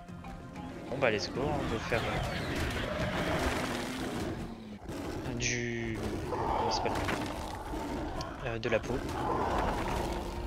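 Creatures screech and grunt while fighting.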